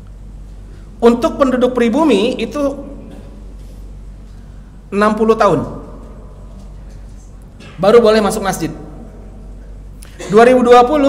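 A man speaks into a microphone in short, measured phrases with pauses between them.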